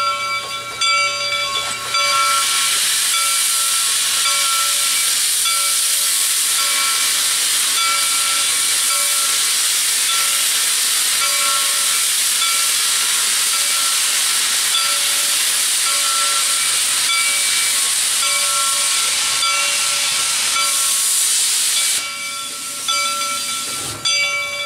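A steam locomotive chugs slowly along the track.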